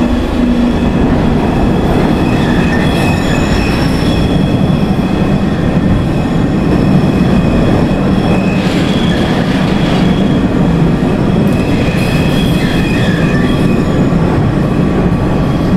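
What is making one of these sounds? A subway train rumbles and clatters steadily along the tracks.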